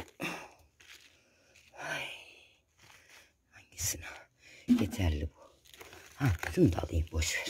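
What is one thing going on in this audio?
Leafy plants rustle softly as a hand brushes and picks at them.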